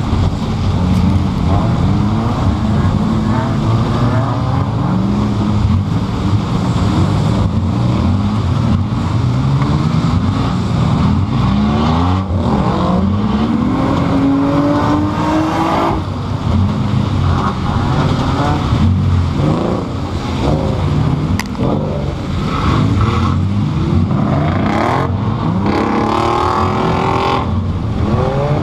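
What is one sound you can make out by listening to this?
A car engine roars loudly, revving up and down.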